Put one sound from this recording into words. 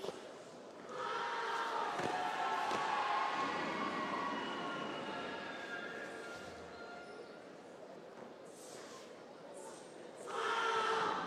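Young men shout loudly together in an echoing hall.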